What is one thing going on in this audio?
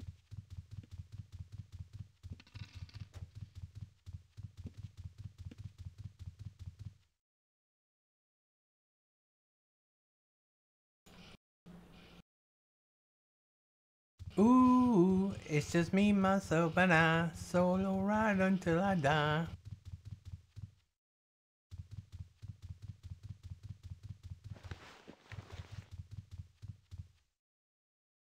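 Footsteps thud in a quick, steady rhythm.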